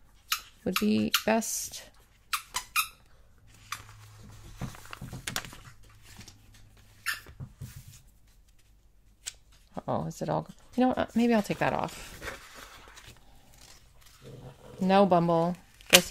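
A sticker peels off its backing sheet.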